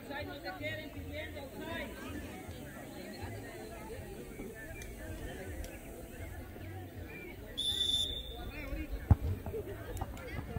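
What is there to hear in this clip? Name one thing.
Girls shout and call to each other across an open field.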